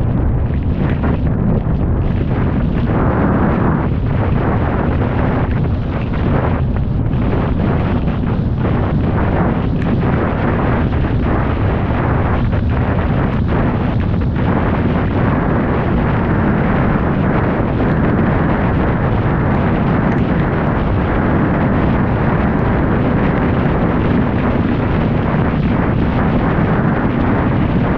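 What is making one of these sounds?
Rain patters against a car window.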